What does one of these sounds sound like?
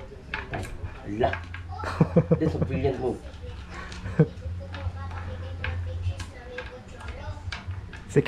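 Small seeds clatter and click into wooden hollows.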